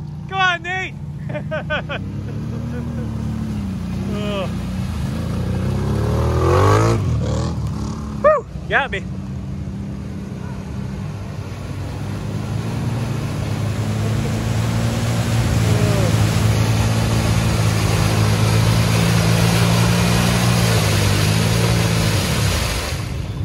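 Mud and water splash under wheels.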